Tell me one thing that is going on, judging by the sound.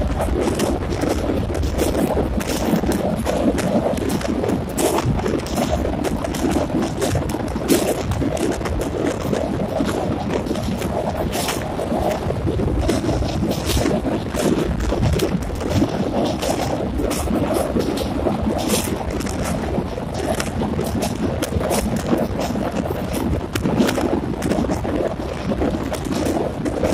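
Wheels clatter over rail joints on a bridge.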